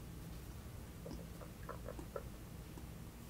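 A young woman gulps down a drink close to a microphone.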